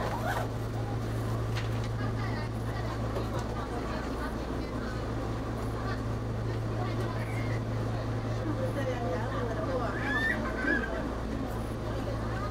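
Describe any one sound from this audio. A train engine idles nearby with a steady low hum.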